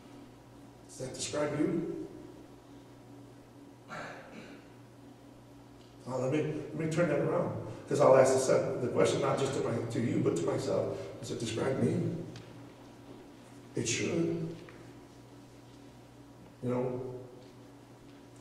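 A man speaks with emphasis through a microphone in a large echoing hall.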